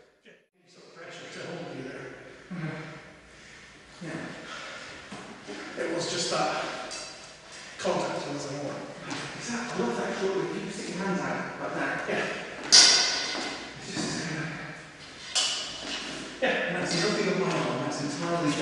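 An adult speaks calmly, echoing in a large hall.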